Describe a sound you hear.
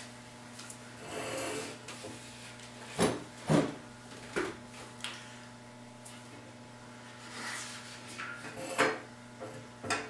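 An older man speaks quietly and haltingly close by.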